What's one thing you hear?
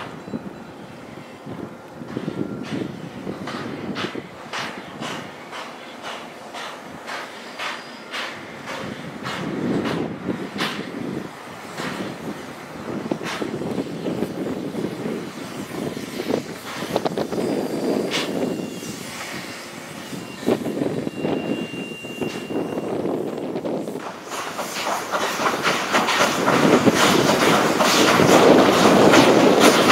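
A steam locomotive chuffs slowly and rhythmically.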